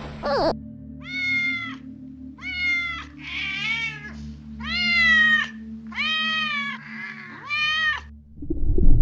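A kitten mews repeatedly.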